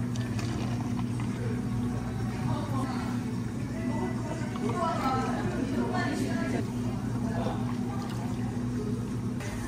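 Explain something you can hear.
Liquid pours and splashes into a plastic cup.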